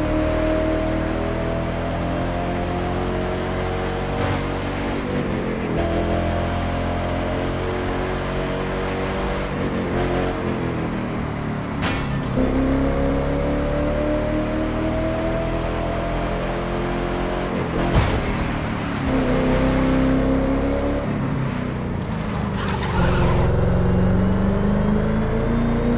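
Tyres hiss on asphalt.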